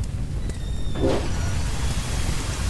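Water sprays out of a pipe with a loud hiss.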